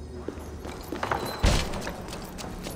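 A heavy metal gate bangs open.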